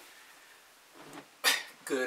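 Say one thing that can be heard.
Fabric rustles as a man sits down.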